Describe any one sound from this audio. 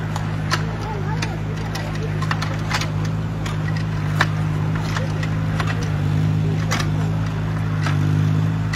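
A mini excavator's steel bucket clanks as it digs into soil.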